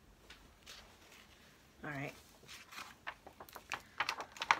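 Magazine pages rustle and flap as they are flipped.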